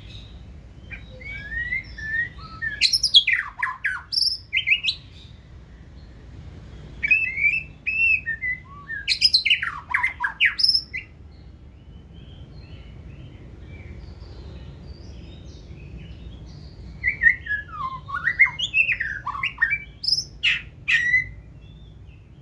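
A caged songbird sings loud, varied phrases of whistles and chirps in bursts.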